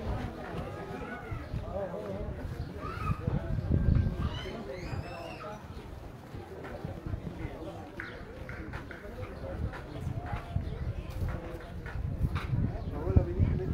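Footsteps of a crowd shuffle along a street outdoors.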